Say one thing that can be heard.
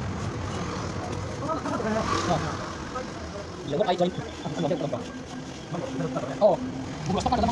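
A trowel taps against cement.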